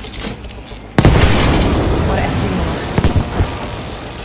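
An explosion bursts with a loud roar and crackle.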